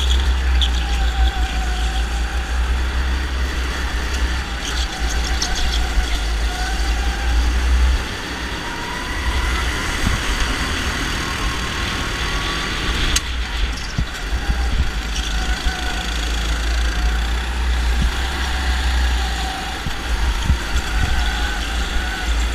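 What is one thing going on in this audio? A go-kart engine buzzes close by, rising and falling in pitch as it speeds up and slows down.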